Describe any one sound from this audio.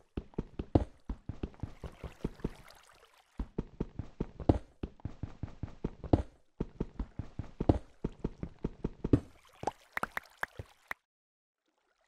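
A pickaxe chips rapidly at stone.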